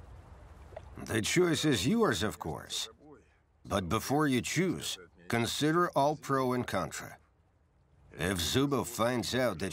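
A man speaks loudly and urgently, close by.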